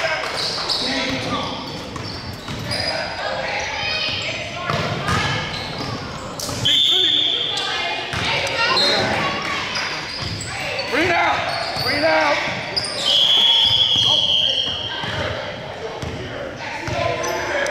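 Spectators murmur and call out in a large echoing gym.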